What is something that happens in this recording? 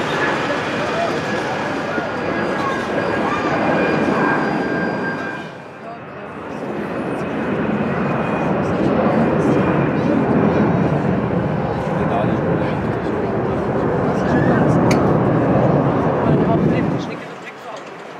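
A jet engine roars loudly as an airliner takes off and climbs away.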